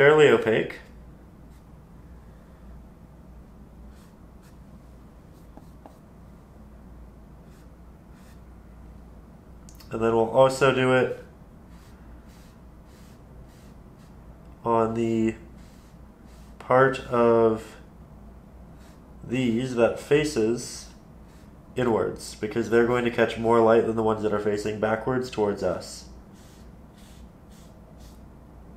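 A paintbrush softly brushes across canvas.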